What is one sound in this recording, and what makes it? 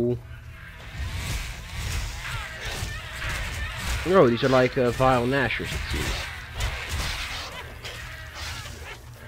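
Rapid blows and magic blasts crash during a fight.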